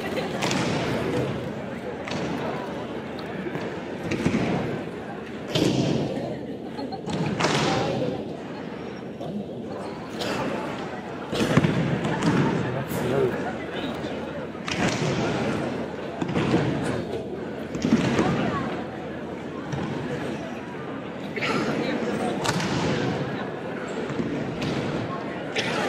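Bodies thump onto a padded mat again and again in a large echoing hall.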